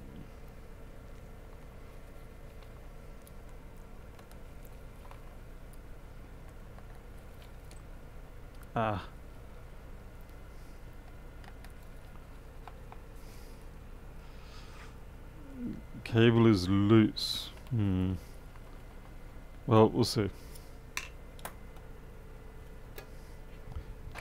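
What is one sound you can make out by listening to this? Tools click and scrape against a metal laptop case.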